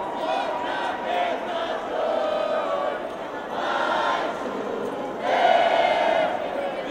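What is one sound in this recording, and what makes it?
A large crowd sings and cheers loudly in an echoing hall.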